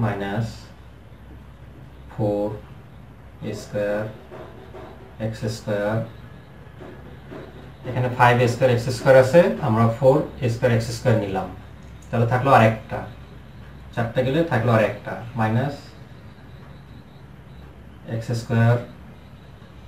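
A man speaks calmly nearby, explaining in short bursts.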